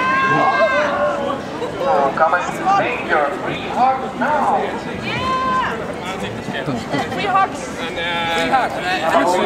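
A young woman sings loudly through a microphone outdoors.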